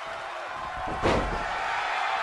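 Bodies thud heavily onto a wrestling ring's mat.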